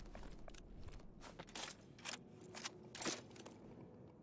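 A weapon clicks and clacks as it is reloaded.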